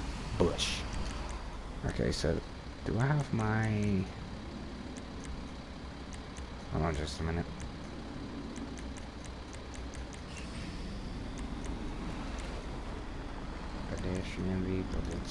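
Soft game menu clicks tick as options are scrolled through.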